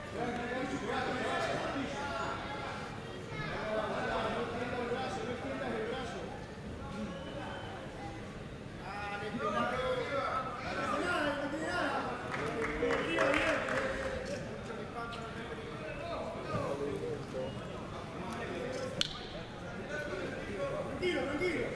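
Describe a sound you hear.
A crowd of spectators shouts and cheers in an indoor hall.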